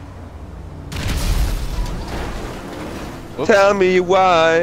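A car crashes and tumbles with a loud, rushing roar.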